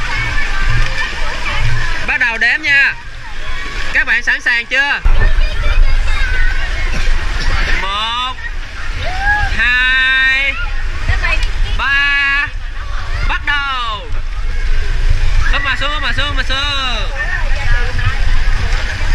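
Water splashes and sloshes close by in a swimming pool.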